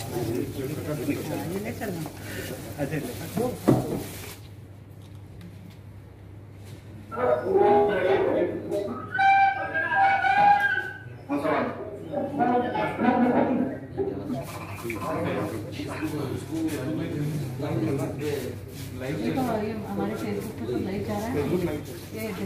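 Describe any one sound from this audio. Several people talk at once in a room.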